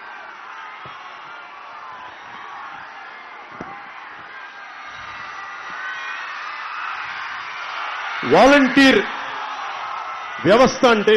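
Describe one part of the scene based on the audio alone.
A large crowd cheers and whistles outdoors.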